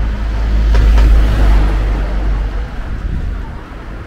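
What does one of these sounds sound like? A car drives away down the street.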